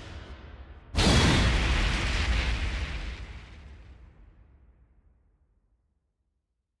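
A loud booming whoosh hits and slowly fades away.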